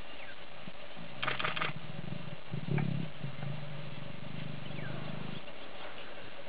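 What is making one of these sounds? A lion growls low and deep.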